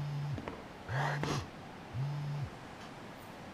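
A phone buzzes in short bursts.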